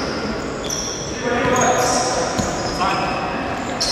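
A ball is kicked across a hard indoor court.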